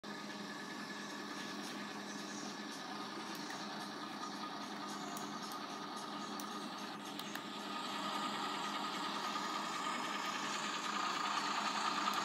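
A truck engine drones steadily through small laptop speakers.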